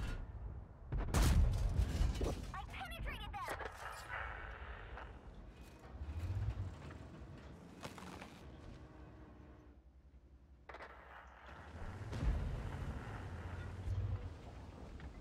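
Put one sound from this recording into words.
A tank cannon fires with a loud, deep boom.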